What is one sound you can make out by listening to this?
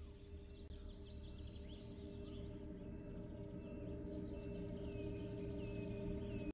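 Traffic hums steadily on a distant highway.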